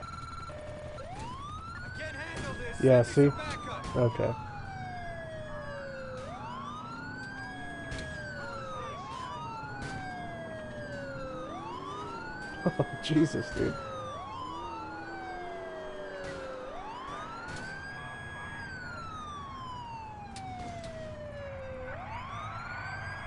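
A car engine hums as a police car drives.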